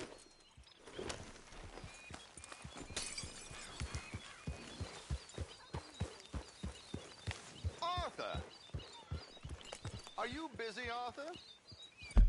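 Horse hooves clop steadily on soft ground.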